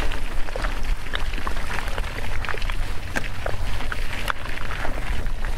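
Wind rushes steadily past.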